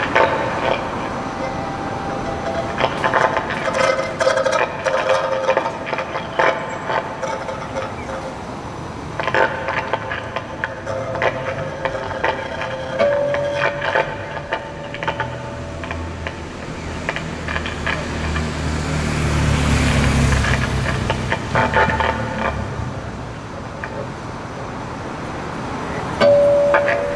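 A violin plays long bowed notes.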